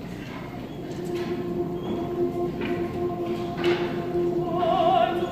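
A choir begins to sing together.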